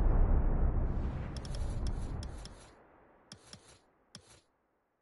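A soft rushing whoosh swells and fades away.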